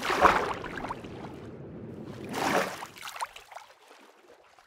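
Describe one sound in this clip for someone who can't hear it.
Water splashes in bursts as a game character swims.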